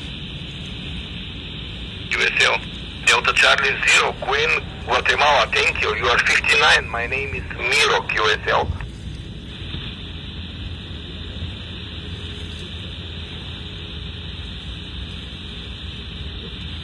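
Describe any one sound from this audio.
Static hisses steadily from a radio.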